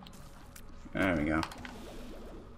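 A laser beam blasts with a loud wobbling buzz.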